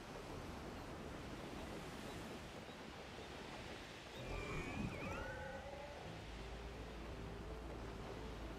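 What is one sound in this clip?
Wind rushes steadily past a flying creature.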